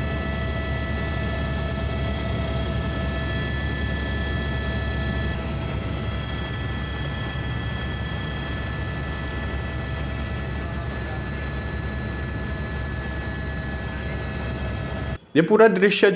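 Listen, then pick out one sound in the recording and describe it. A helicopter engine whines and rotor blades drone steadily, heard from inside the cabin.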